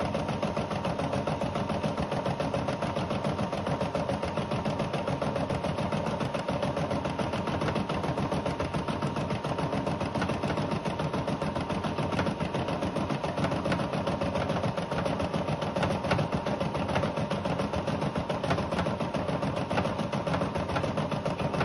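An embroidery machine whirs and clatters steadily with rapid needle stitching.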